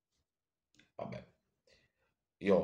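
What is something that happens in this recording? A man speaks quietly and briefly close to a microphone.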